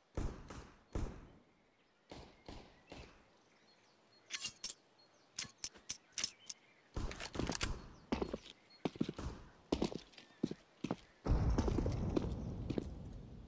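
Footsteps tap on hard ground.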